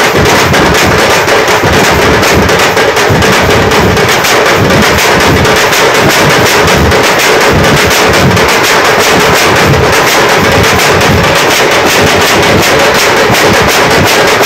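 A large group of drummers beats frame drums loudly in a fast, steady rhythm.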